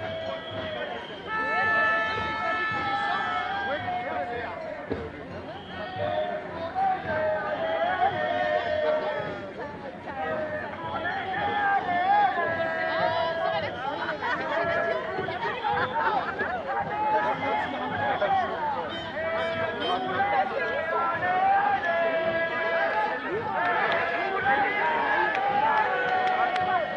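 A large crowd of men and women chants and sings loudly outdoors.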